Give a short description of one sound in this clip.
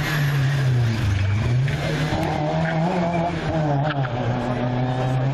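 A small car engine revs hard, its pitch rising and falling.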